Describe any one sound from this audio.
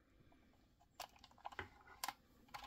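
Plastic parts of a toy click and tap as hands handle it.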